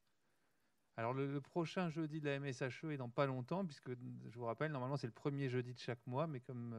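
A man speaks with animation into a handheld microphone.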